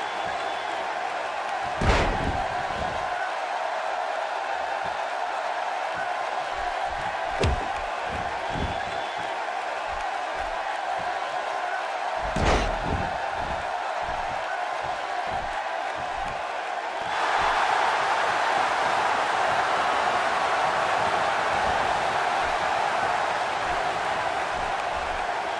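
A large crowd cheers steadily and swells louder.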